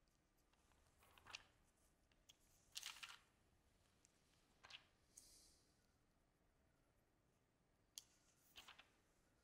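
Paper pages rustle as they are turned.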